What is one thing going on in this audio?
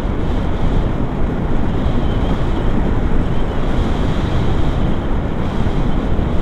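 Strong wind rushes and buffets loudly past in flight.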